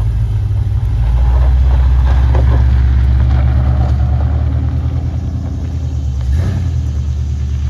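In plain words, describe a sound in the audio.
A car drives off over gravel, its engine rising.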